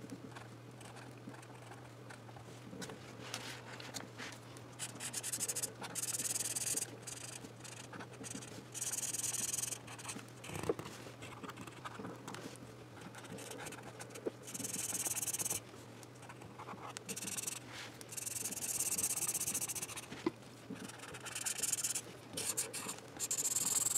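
A felt-tip marker scratches and squeaks across paper in quick strokes.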